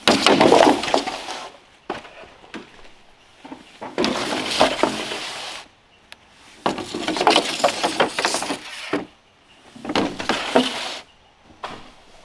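Bamboo poles scrape and clatter as they are dragged over dry leaves.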